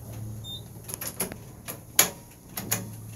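A finger clicks an elevator button.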